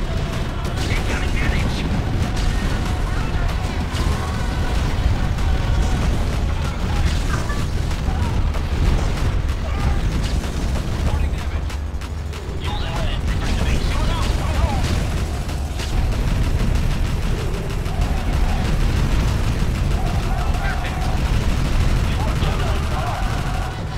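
Explosions boom repeatedly in a battle.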